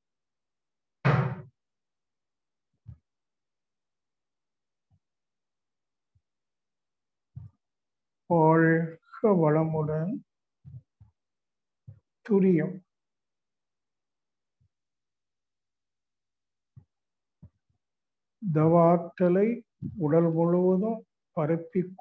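An elderly man speaks slowly and calmly in short bursts through a microphone, heard as over an online call.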